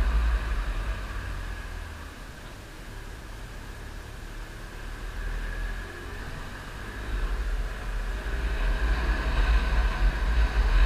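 Wind rushes and buffets past the rider.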